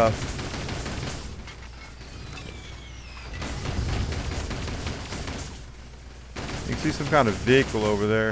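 A machine gun fires rapid bursts.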